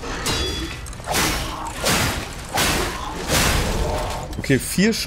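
Blades clash and clang in a fight.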